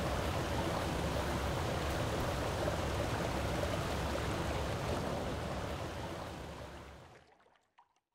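Water gushes upward in a loud, steady rush that fades away.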